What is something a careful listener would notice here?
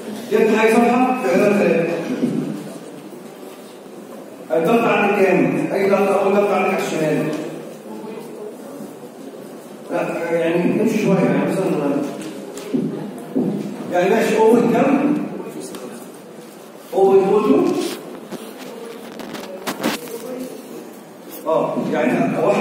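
A young man speaks calmly through a microphone, in bursts with pauses, in an echoing room.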